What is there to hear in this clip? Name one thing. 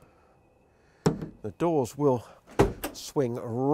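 A van door slams shut with a heavy thud.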